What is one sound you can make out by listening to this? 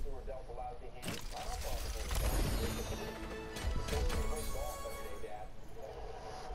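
A game loot box bursts open with a loud magical whoosh.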